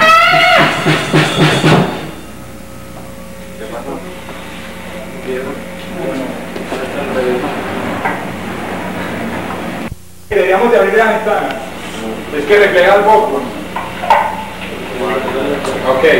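A bass guitar plays a low line.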